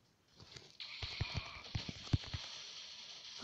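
Cartoonish gunshots crack in quick bursts.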